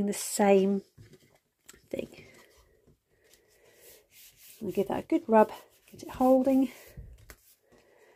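Hands slide and press stiff card against a tabletop.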